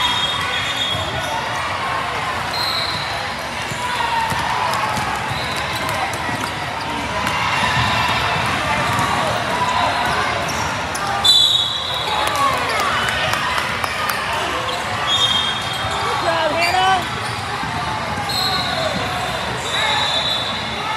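Sneakers squeak sharply on a hardwood court, echoing in a large hall.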